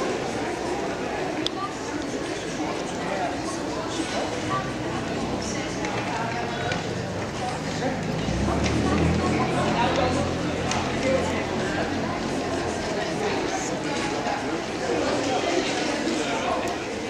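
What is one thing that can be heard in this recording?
A crowd of men and women chatter in the background outdoors.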